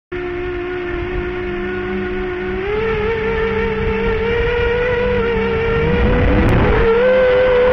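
Small drone motors whine steadily and rise in pitch as they spin up.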